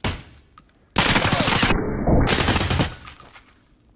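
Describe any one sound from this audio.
Rapid gunshots fire close by in loud bursts.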